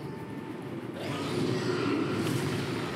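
A loud whooshing blast bursts out.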